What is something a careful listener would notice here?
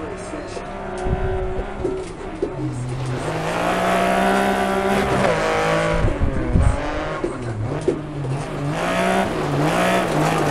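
Tyres crunch and skid on loose gravel.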